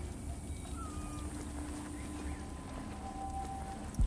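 Footsteps thud on a wooden walkway.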